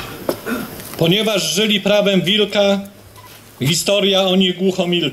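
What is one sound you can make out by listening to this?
A middle-aged man speaks steadily into a microphone, heard through a loudspeaker.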